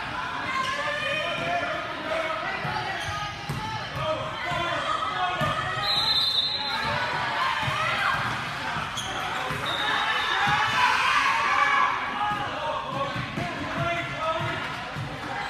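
A crowd of spectators chatters and calls out throughout a large echoing gym.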